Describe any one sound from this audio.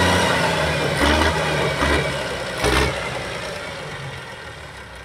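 A tractor engine rumbles steadily nearby, with louder bursts, then fades.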